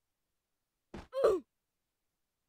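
A game character bursts apart with a short sound.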